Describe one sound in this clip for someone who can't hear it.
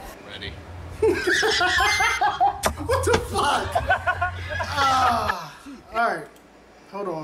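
A young man bursts into laughter close to a microphone.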